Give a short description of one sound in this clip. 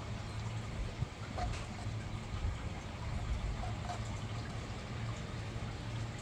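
A brush dabs and scrapes on rough bark.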